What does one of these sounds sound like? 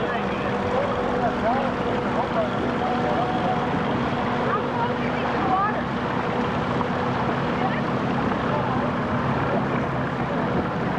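Men on board call out to each other over the water.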